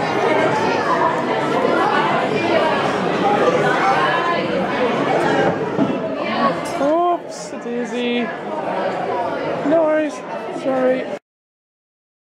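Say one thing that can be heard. Many people chatter in a busy, echoing room.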